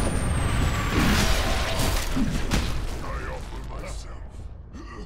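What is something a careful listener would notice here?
A loud magical explosion bursts and roars, then slowly fades.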